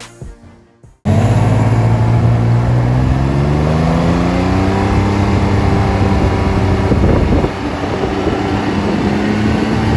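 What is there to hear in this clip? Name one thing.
A motorcycle engine hums close by, its pitch rising steadily as it speeds up.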